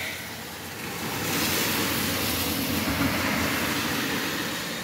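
A car drives past with tyres hissing on a wet road.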